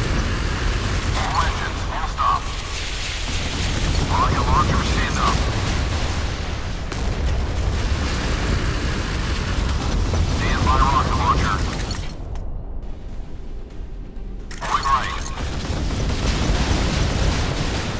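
Shells explode against a warship's hull.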